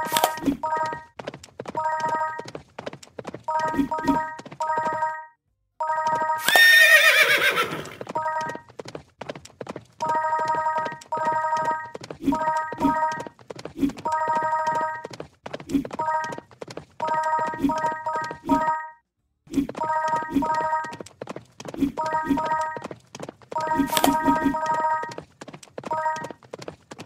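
Hooves clop in a quick, steady gallop.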